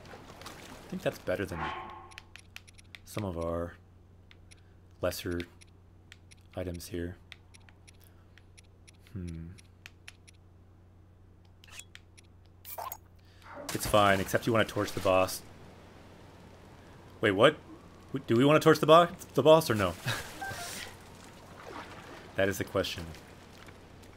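A man talks into a microphone in short bursts, with animation.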